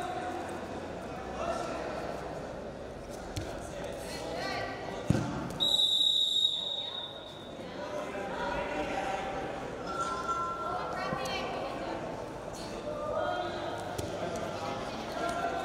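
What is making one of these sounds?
Wrestlers' bodies thud and shuffle on a mat.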